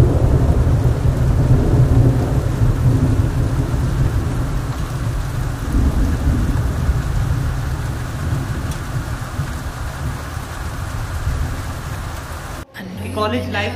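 Wind blusters outdoors against the microphone.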